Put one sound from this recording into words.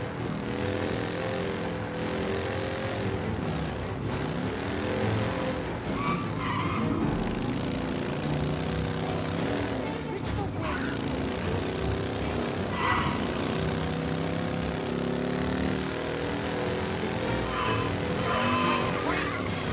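A motorcycle engine hums steadily and rises and falls as it speeds along.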